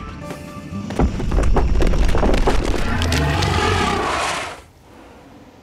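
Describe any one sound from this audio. Heavy stone blocks crash down and rumble.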